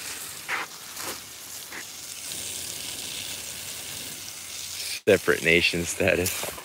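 Water spatters onto leaves and mulch.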